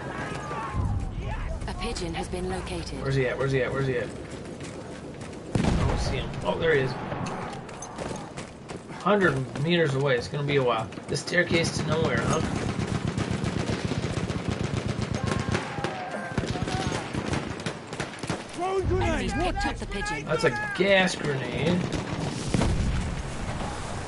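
Machine gun fire rattles in rapid bursts.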